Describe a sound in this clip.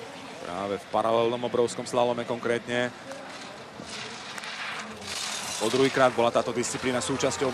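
Skis scrape and hiss over hard snow at speed.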